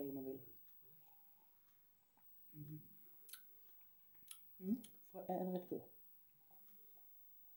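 A man gulps a drink.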